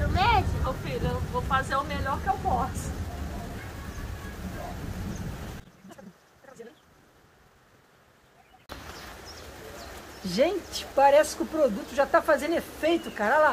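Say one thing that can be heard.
A woman talks with animation close by.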